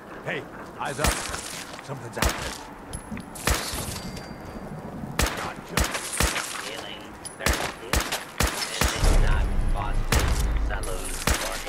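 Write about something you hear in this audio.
A rifle fires in quick bursts of loud shots.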